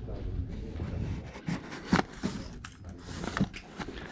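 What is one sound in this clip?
Items rustle and knock as a hand rummages through a box.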